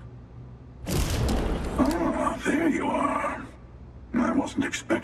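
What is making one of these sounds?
A man speaks calmly, with a muffled, filtered voice.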